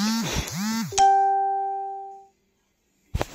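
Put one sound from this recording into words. An electronic chime rings out and slowly fades.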